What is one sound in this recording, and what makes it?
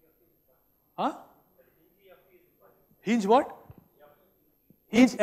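A man speaks with animation in an echoing hall.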